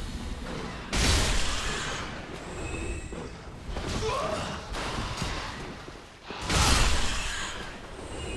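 Giant rats squeal and screech.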